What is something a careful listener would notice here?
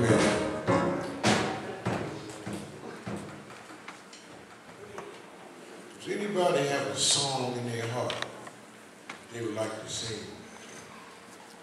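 A man preaches loudly through a microphone in an echoing hall.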